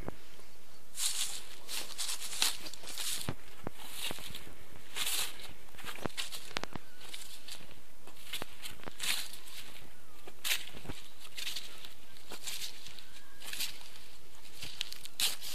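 Footsteps crunch on dry grass and stubble.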